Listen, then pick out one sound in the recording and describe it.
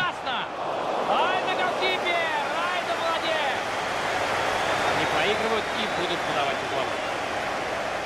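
Whistles and horns sound from a stadium crowd.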